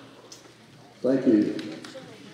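An elderly man speaks into a microphone over loudspeakers.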